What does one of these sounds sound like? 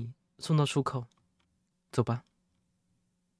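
A young man speaks briefly and animatedly into a microphone.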